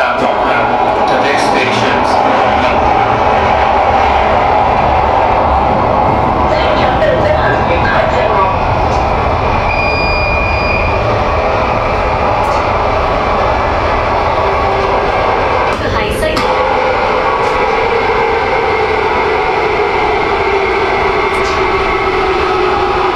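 A subway train rumbles and roars steadily along the track.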